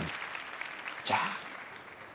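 A young man laughs out loud.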